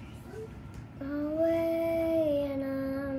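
A young boy makes a long, steady vocal sound close by.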